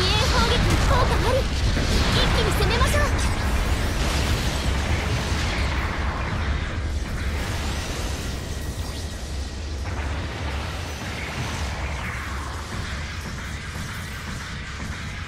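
A giant robot's thrusters roar steadily as it flies.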